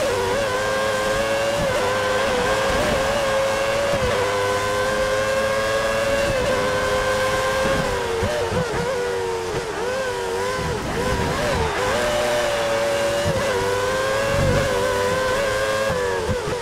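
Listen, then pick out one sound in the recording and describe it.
Rain hisses steadily.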